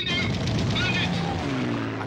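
A man shouts loudly over engine noise.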